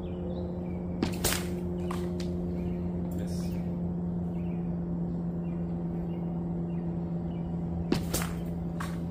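A thrown object strikes a wooden target with a sharp thud.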